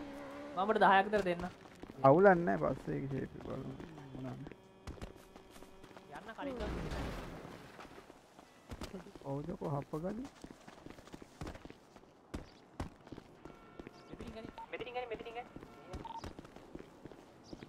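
Footsteps patter quickly on pavement and grass.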